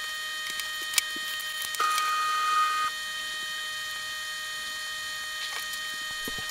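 Plastic and carbon parts click and knock together as they are handled.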